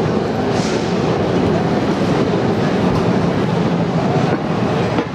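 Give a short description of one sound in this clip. A cable car rolls slowly over rails with a steady rumble.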